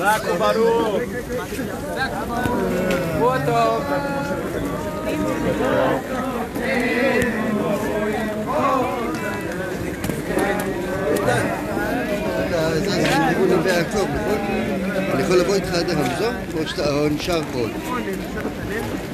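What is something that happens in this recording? A crowd of men talks and calls out outdoors.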